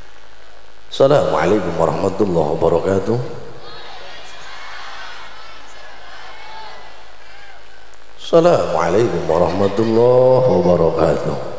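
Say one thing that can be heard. An elderly man preaches with animation through a loudspeaker system.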